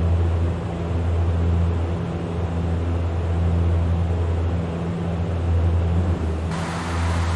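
Propeller engines drone steadily with a deep hum.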